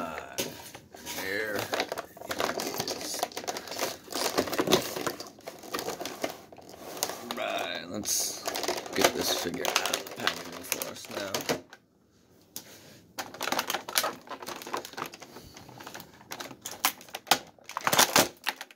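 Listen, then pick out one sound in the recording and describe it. Plastic packaging crinkles and rattles.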